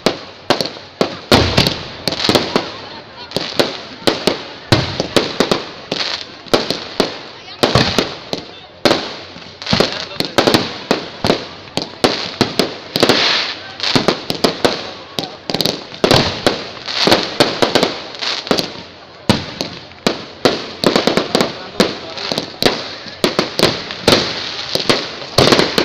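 Fireworks bang and pop rapidly, close by.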